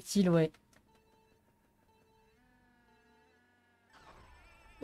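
Countdown beeps sound softly from a racing game.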